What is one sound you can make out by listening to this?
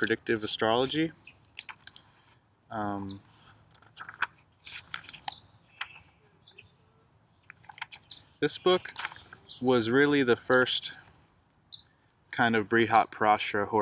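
A young man reads aloud with expression, close by.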